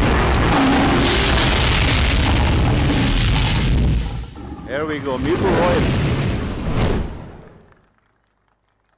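A loud, booming intro sting with rushing whooshes plays over loudspeakers, then fades away.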